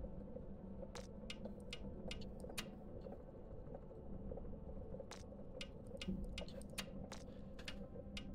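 Soft clicks sound now and then.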